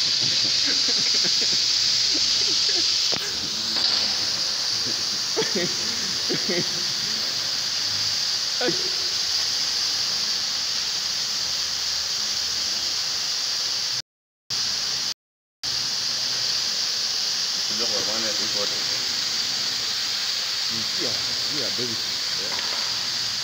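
Fire extinguishers hiss loudly and steadily as they spray.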